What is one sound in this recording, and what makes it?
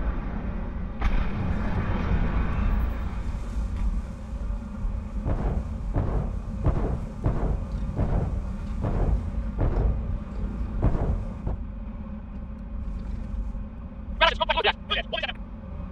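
A jet engine roars steadily with a deep rumble.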